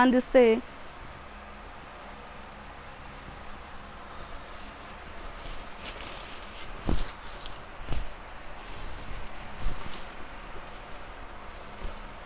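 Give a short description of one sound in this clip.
Silk fabric rustles as it is unfolded and spread out.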